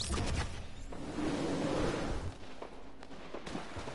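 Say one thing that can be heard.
Water splashes as a character swims.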